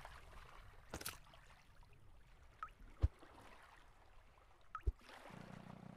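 A menu clicks open and shut with soft taps.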